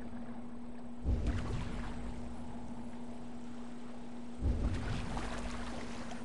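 Oars splash into the water in slow, heavy strokes.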